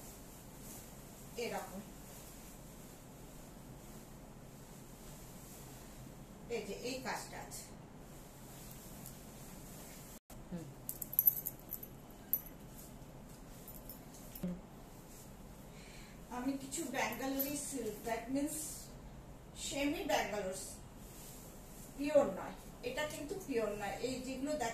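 Cloth rustles as a woman handles fabric.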